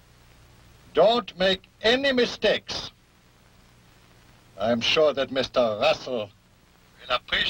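An elderly man speaks quietly into a telephone.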